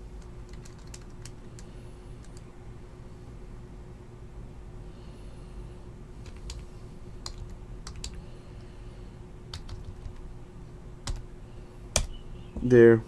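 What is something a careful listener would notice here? A hard plastic card holder clicks and taps softly in a hand.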